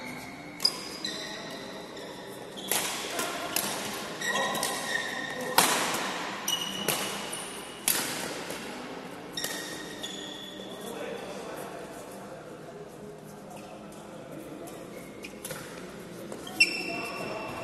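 Badminton rackets strike a shuttlecock with sharp pops in an echoing hall.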